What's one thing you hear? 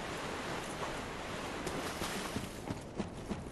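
Water splashes underfoot.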